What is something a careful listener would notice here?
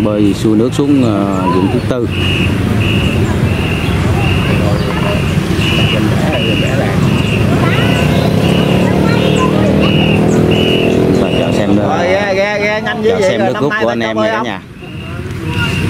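Many paddles splash and churn the water in quick rhythm.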